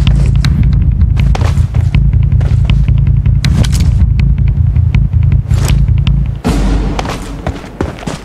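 Footsteps thud quickly over grass.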